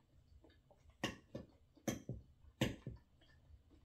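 A fork and knife clink against a plastic dish.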